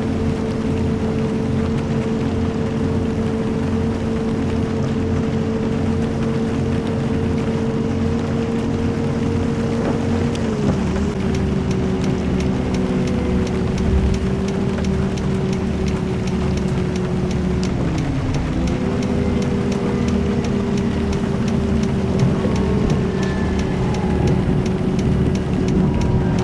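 A bus engine hums steadily and dips briefly as gears shift.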